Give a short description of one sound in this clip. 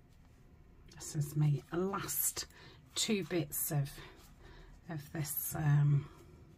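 Paper rustles and crinkles as hands fold and handle it.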